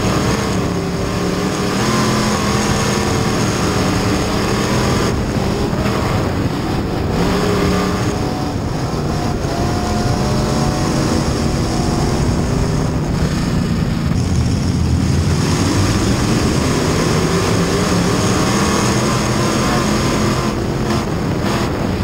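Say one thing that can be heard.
A race car engine roars loudly up close, rising and falling in pitch.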